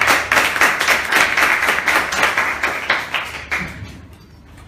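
A small group claps hands in applause.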